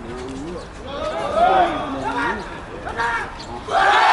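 A group of young men shouts together in the distance.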